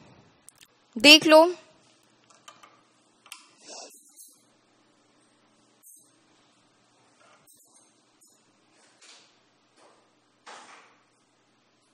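A young woman speaks quietly into a headset microphone, with long pauses.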